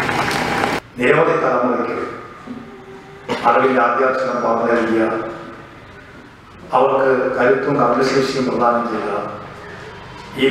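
A man speaks loudly through a microphone and loudspeaker, with echo.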